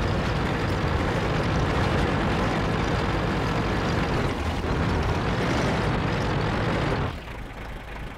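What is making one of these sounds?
A heavy tank engine rumbles loudly as the tank drives.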